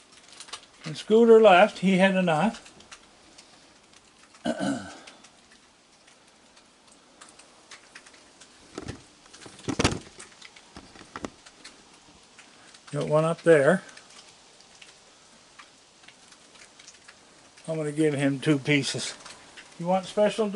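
An elderly man speaks softly and close by.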